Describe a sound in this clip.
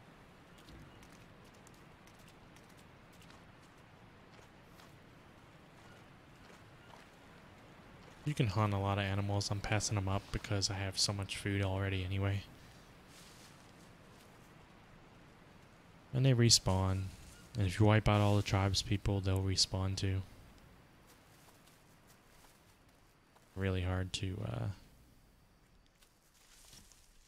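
Footsteps rustle softly through leafy undergrowth.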